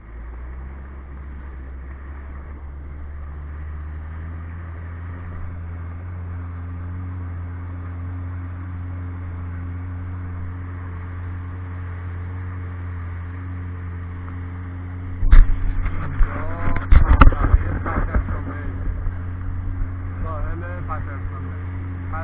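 A jet ski engine hums steadily.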